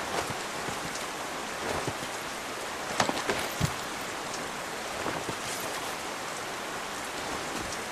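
Heavy rain falls steadily outdoors.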